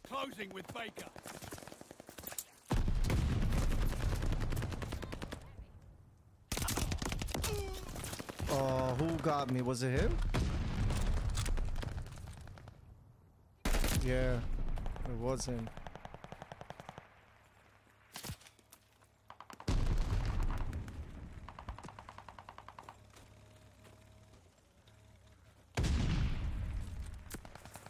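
Rapid gunfire from an automatic rifle rattles in loud bursts.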